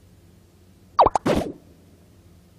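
A sharp electronic blip and swish sound as an item pops into place.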